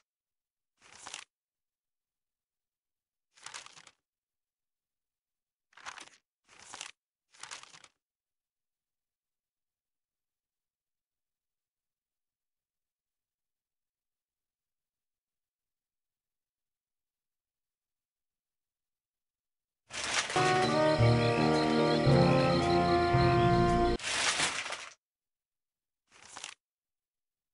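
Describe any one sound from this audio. Notebook pages flip with short papery swishes.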